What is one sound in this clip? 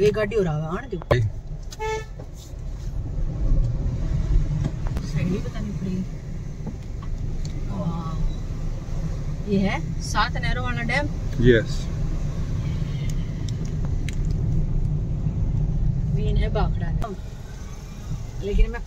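A car rumbles steadily along a road.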